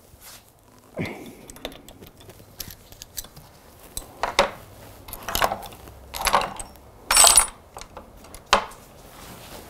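Metal parts of a bicycle click and knock as they are handled.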